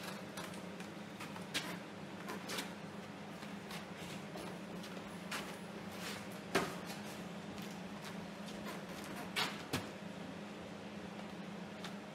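Footsteps shuffle on a gritty floor.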